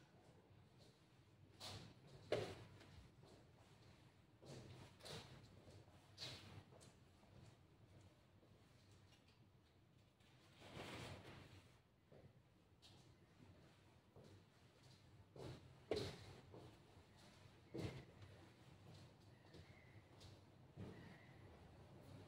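A chess piece is set down on a wooden board with a soft knock.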